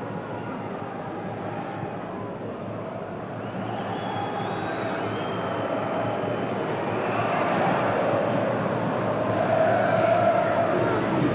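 A large stadium crowd roars, growing louder.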